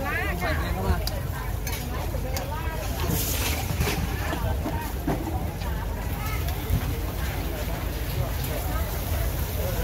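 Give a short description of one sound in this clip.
Batter sizzles on a hot griddle.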